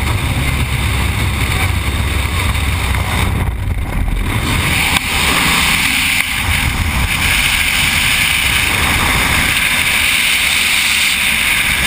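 Wind roars loudly past a falling skydiver.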